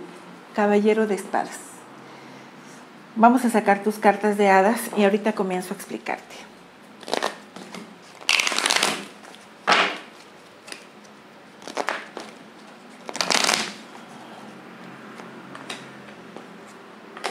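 A deck of cards is shuffled with soft riffling and flicking.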